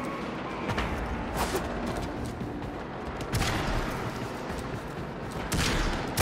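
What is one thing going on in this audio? Heavy sword strikes whoosh and clang.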